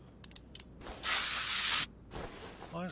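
An aerosol can sprays with a short hiss.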